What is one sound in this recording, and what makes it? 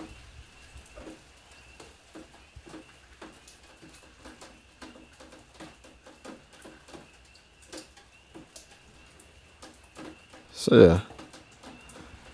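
Buttons on a small remote click softly.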